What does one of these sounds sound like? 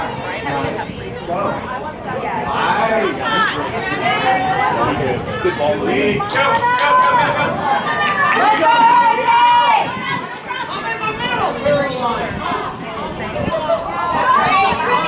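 Young women shout and cheer across an open field.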